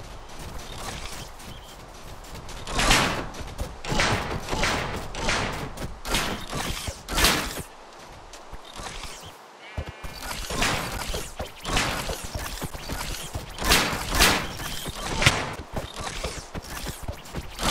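Weapon swings strike blocky creatures again and again with sharp thuds.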